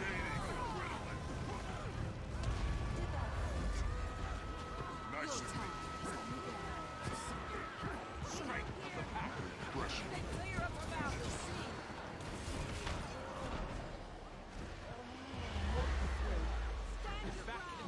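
Magic blasts and weapon strikes clash in a busy battle.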